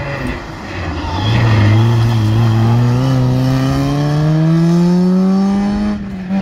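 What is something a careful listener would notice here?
A second small hatchback rally car accelerates out of a hairpin, its engine revving high.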